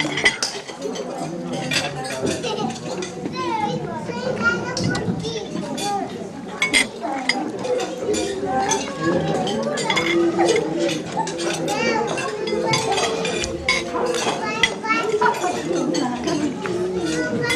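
Many voices of elderly women chatter and talk over each other close by.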